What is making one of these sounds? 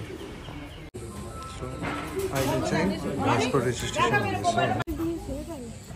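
Young people chat among themselves nearby.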